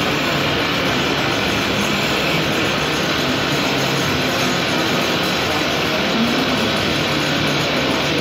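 A wood lathe spins a timber blank.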